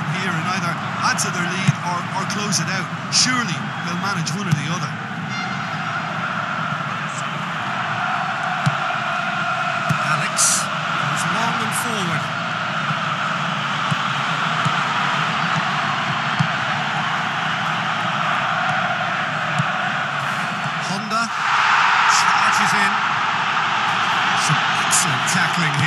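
A large stadium crowd roars and chants steadily, then swells louder.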